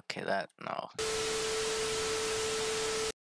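Television static hisses loudly and steadily.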